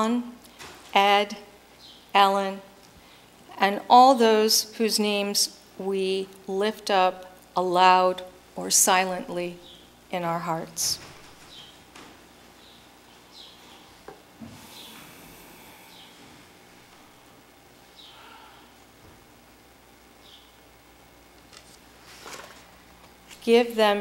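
A woman speaks calmly through a microphone in a large echoing room.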